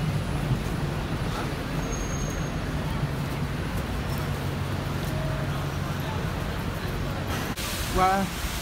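A bus engine hums steadily nearby.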